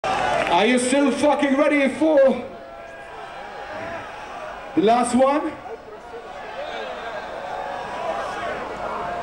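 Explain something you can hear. A crowd cheers and shouts in a large open space.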